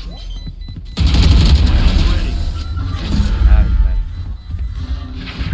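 A game's victory jingle plays loudly.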